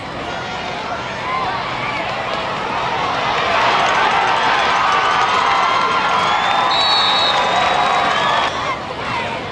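A crowd of spectators cheers loudly outdoors, then dies down.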